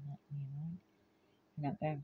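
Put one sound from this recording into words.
An older woman laughs softly.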